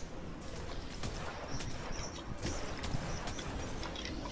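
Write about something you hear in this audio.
A sword swings and strikes with sharp metallic hits.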